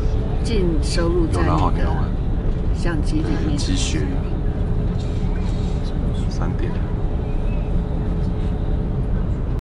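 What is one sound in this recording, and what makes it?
A vehicle rumbles steadily along a road.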